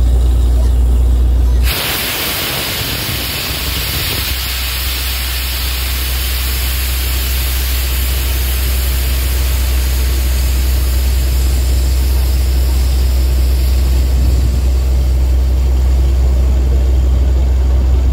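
A drilling rig engine runs with a loud, steady drone.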